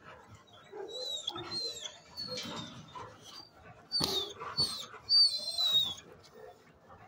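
A dog whines in high, short cries nearby.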